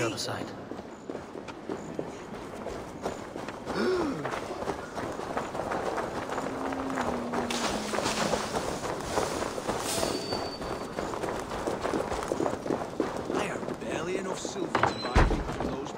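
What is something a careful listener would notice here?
Footsteps crunch through grass and over stone.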